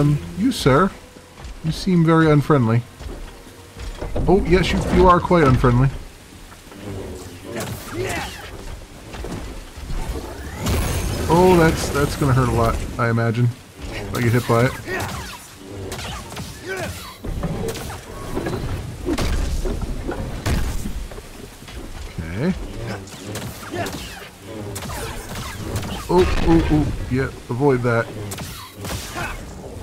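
A lightsaber hums and whooshes as it swings.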